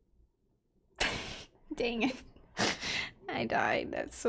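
A young woman laughs loudly close to a microphone.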